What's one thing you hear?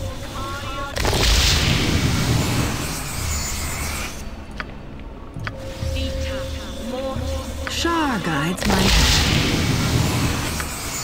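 A magic spell rings out with a shimmering whoosh.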